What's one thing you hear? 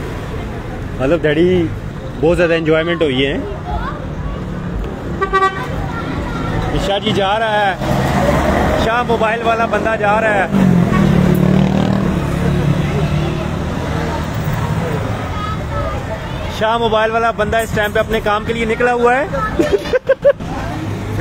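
Men talk loudly nearby in the open air.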